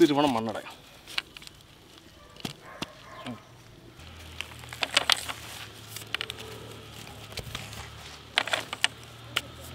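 Hands scrape and crumble dry soil.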